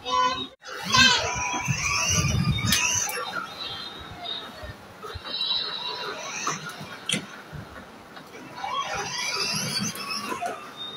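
A toy electric car's motor whirs as it drives.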